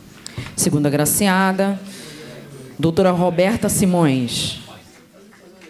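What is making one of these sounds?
A man speaks loudly through a microphone, drawing out his words.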